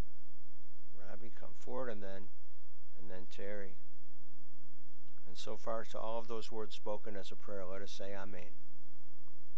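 A middle-aged man speaks into a microphone in a slow, solemn voice.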